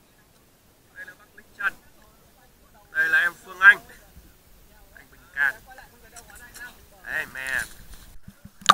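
Young men shout and call out with excitement close by.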